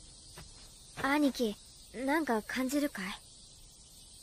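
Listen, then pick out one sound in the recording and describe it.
A young boy asks a question in a high, curious voice.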